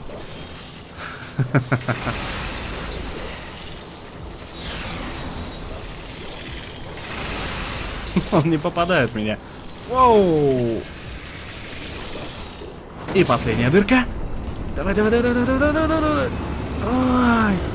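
Heavy metallic blows clang and crash.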